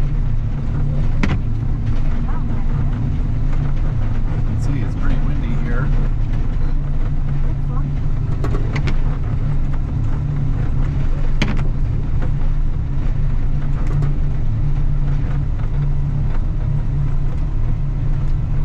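A snow plow blade scrapes along the snowy road.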